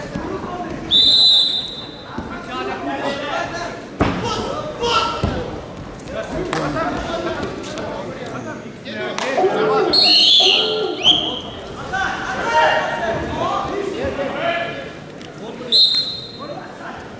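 A referee blows a whistle in short sharp blasts.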